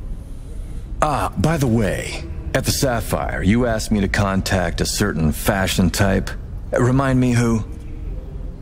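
A man speaks in a calm, low voice, close by.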